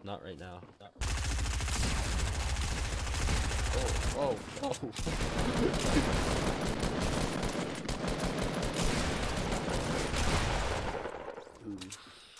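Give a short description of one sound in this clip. Gunfire rattles rapidly and loudly.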